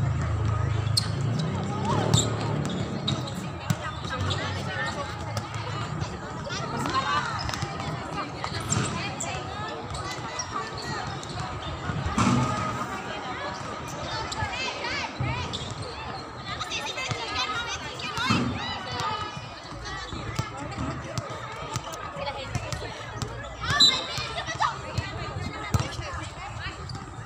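A volleyball thuds as young women hit it.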